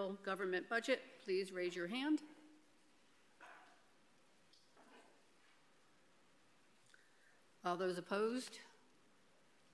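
A woman speaks briefly into a microphone, with pauses.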